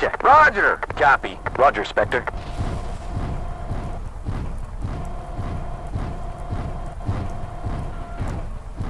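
Heavy mechanical footsteps thud at a steady pace.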